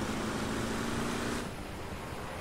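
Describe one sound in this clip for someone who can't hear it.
Aircraft engines hum steadily.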